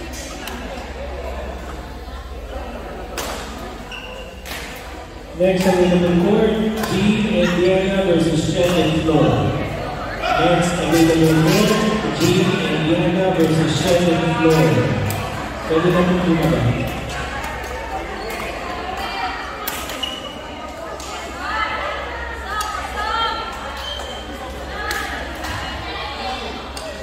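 A racket strikes a shuttlecock with sharp pops in a large echoing hall.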